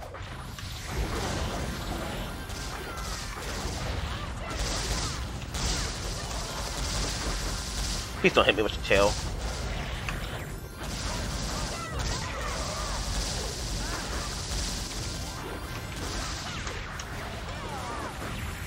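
Fast game sound effects of hits and slashes clatter and whoosh without pause.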